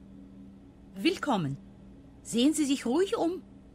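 A young woman speaks in a calm, friendly voice.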